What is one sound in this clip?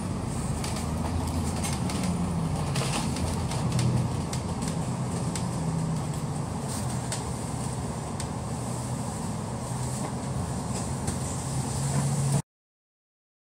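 A bus engine rumbles low and steady close by.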